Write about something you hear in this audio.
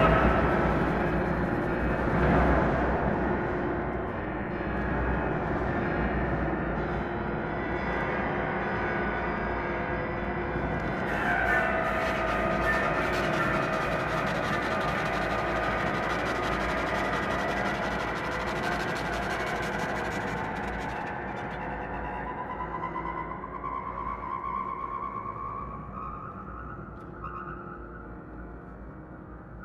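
A small ensemble plays modern chamber music in a reverberant hall.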